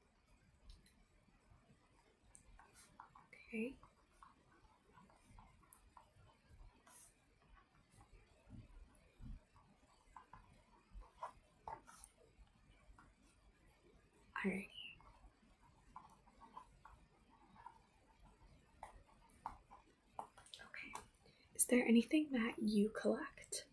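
A young woman speaks softly and close by, then more loudly.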